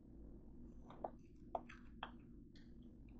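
A metal baking tray clinks and knocks.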